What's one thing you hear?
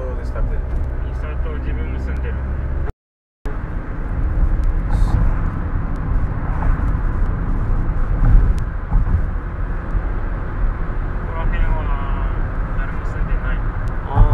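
A car drives along a paved road, its engine and tyres rumbling as heard from inside the car.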